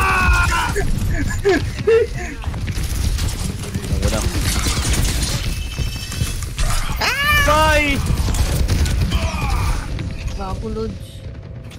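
Gunfire from a game weapon crackles in rapid bursts.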